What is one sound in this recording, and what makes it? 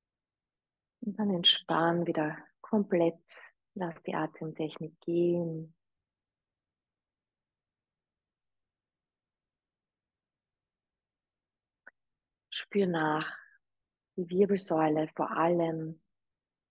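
A young woman speaks calmly into a microphone, in short phrases with pauses.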